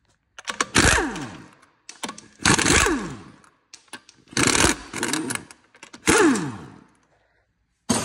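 An impact wrench whirs and rattles loudly in short bursts.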